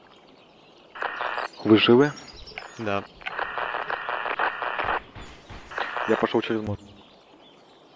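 A handheld radio crackles with static chatter.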